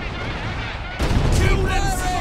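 An explosion bursts with a heavy roar.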